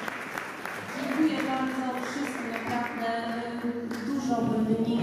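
A woman talks warmly up close.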